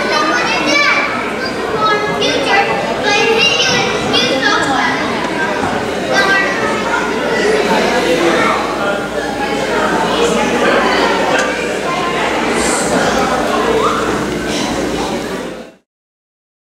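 Children speak and call out loudly on a stage in an echoing hall.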